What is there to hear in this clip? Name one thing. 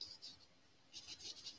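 A paintbrush swishes softly across canvas.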